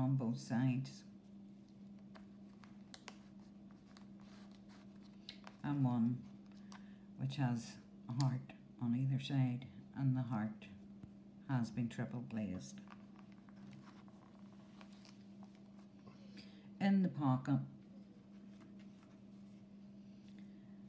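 Paper and ribbon rustle softly as they are handled.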